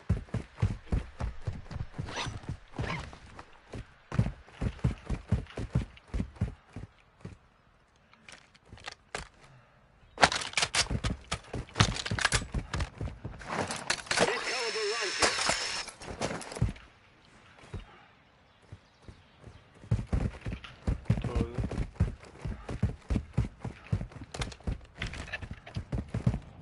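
Quick footsteps run over stone.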